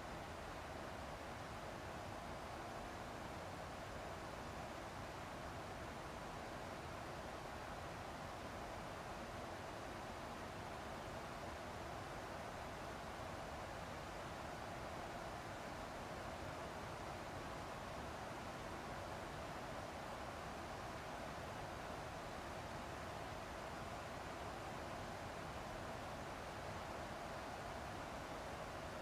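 Jet engines roar steadily with a constant rush of air.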